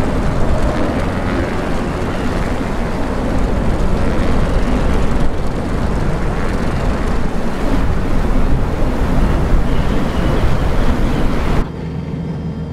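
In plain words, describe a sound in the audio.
A small propeller plane's engine drones loudly and steadily, turning muffled near the end.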